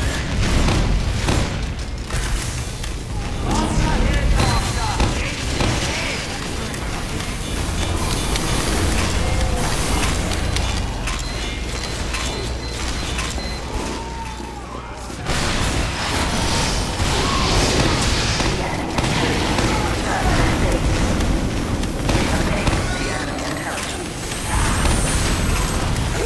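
A minigun whirs and fires rapid bursts of gunfire.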